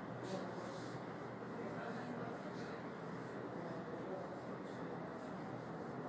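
A board eraser rubs against a whiteboard.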